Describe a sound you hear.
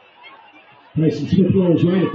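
A crowd cheers loudly.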